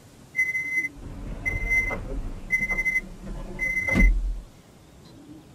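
A train's motors hum low and then fall quiet.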